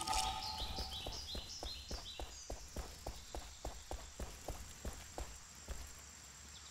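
Footsteps run quickly up stone steps.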